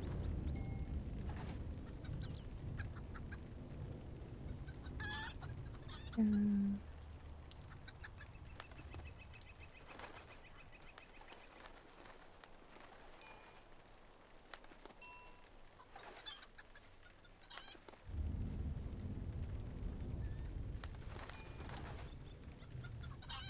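Footsteps patter quickly on a stone path.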